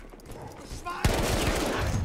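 A gun fires loudly.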